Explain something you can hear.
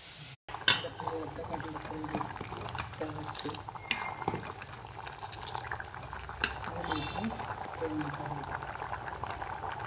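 Thick liquid sloshes as a ladle stirs it.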